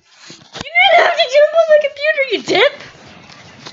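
A young person sings loudly and playfully close by.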